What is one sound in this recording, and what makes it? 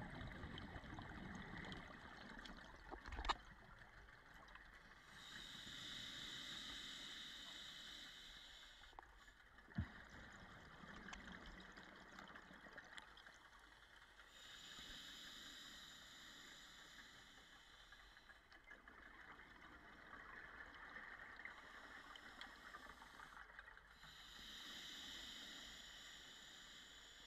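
Scuba regulators hiss and bubbles gurgle as divers breathe underwater.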